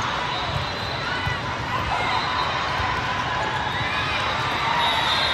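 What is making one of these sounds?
Players' sneakers squeak on the court.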